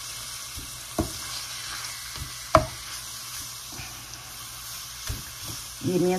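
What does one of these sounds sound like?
A wooden spoon scrapes and knocks against a frying pan.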